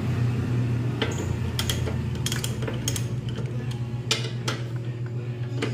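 A ratchet wrench clicks in short bursts.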